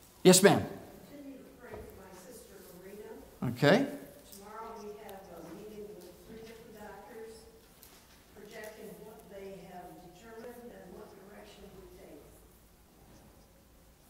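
A man speaks quietly from across the room, heard faintly.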